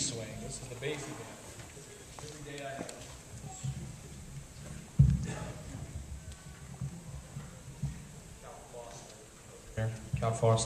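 Horns and saxophones play scattered warm-up notes in a large hall.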